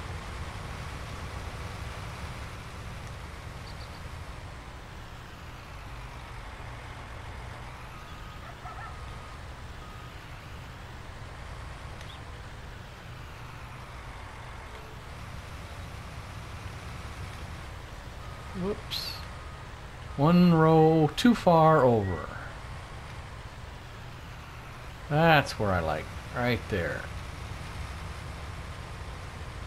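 A combine harvester's engine rumbles steadily.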